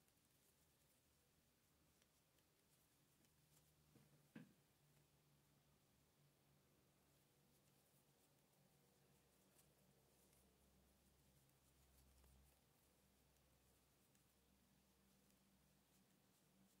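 A crochet hook softly rustles through cotton thread.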